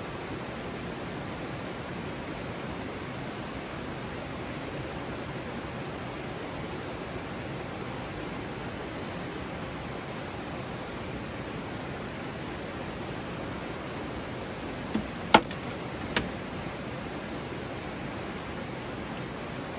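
A stream flows steadily nearby.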